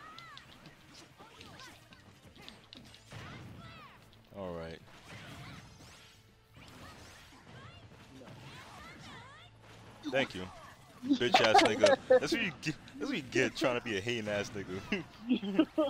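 Video game fighters clash with zapping, whooshing hit effects.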